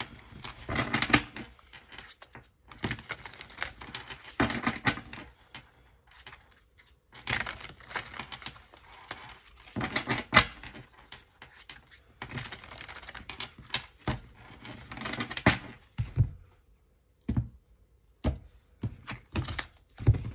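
Playing cards shuffle and riffle softly in someone's hands, close by.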